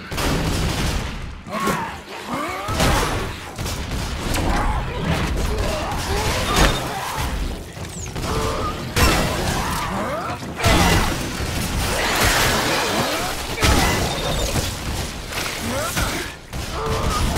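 A monster shrieks and growls.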